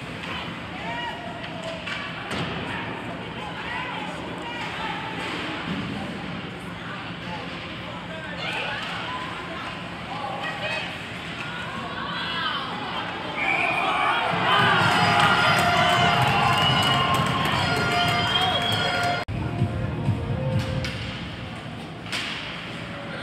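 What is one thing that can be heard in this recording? Ice hockey skates scrape on ice.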